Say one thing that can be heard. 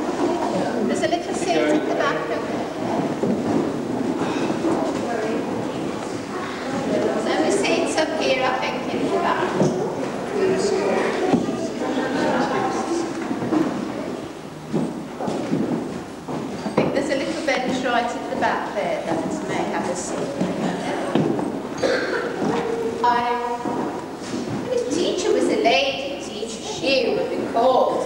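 A middle-aged woman speaks clearly and with animation, close by, in a large echoing room.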